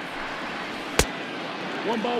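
A baseball smacks sharply into a catcher's mitt.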